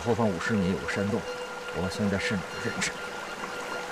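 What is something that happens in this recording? A man speaks tensely at close range.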